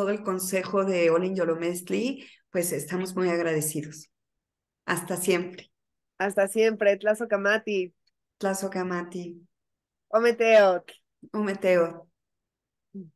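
A middle-aged woman speaks warmly over an online call.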